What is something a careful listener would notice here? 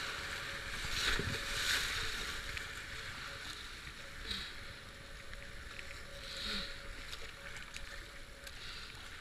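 A paddle splashes into the water with strokes.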